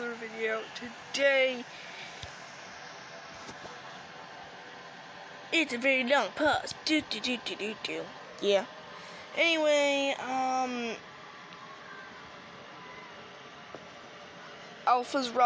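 A child talks close to a phone microphone, with animation.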